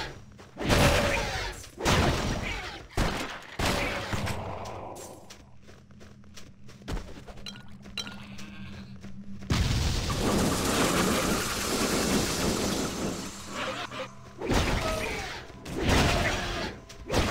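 Weapons clash and strike in quick bursts.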